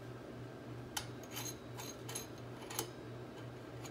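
Metal parts click and tap against each other.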